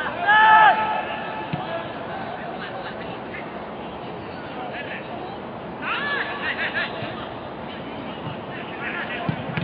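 Young men shout loudly to one another across an open pitch.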